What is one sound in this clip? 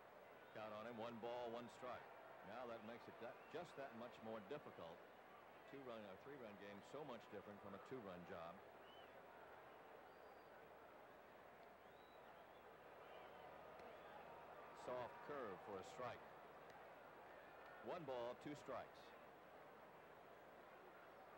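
A large crowd murmurs in an open stadium.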